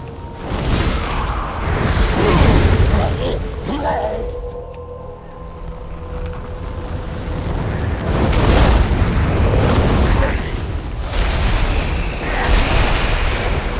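Fiery spells whoosh and crackle in bursts.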